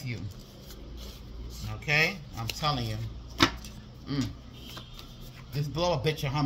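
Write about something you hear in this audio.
Paper cards rustle and slide against each other as hands shuffle them.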